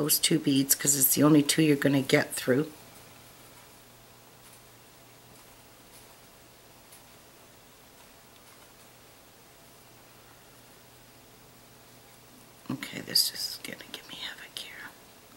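Tiny beads click softly against each other.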